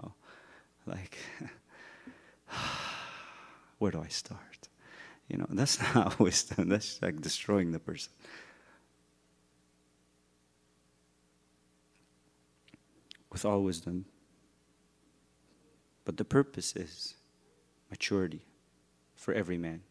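A man speaks with animation into a microphone, pausing now and then.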